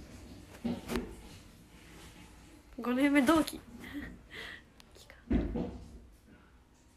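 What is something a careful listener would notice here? A young woman talks close to a microphone in a high, animated voice.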